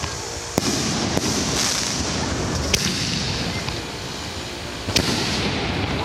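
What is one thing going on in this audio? Fireworks bang sharply overhead.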